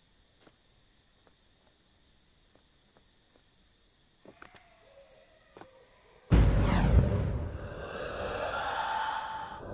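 Footsteps patter on stone and gravel.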